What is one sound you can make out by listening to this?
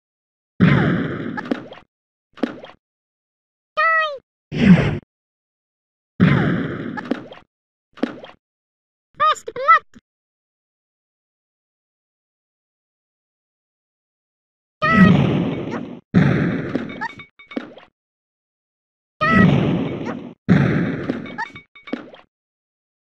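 Loud explosions boom and crash, one after another.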